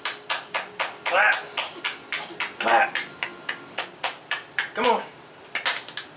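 A baby giggles and squeals.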